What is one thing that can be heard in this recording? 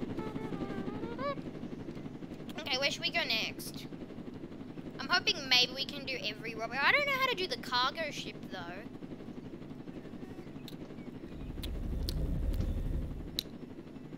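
A helicopter's engine drones steadily.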